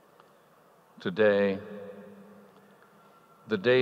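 An elderly man speaks slowly into a microphone in a large echoing hall.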